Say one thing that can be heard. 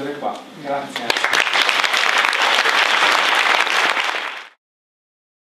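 An audience applauds loudly, then the sound cuts off.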